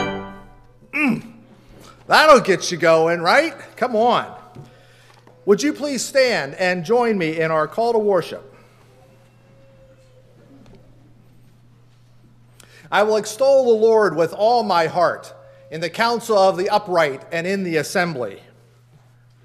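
An elderly man speaks calmly into a microphone in a reverberant hall.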